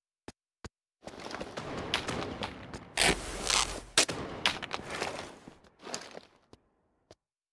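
Footsteps crunch on grass and gravel as a game character walks.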